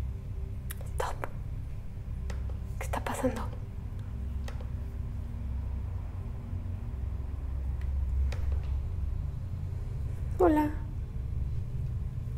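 A young woman speaks softly into a close microphone.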